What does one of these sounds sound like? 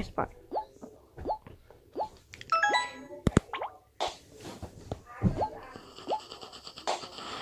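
Short rising electronic blips sound again and again as a game ball bounces.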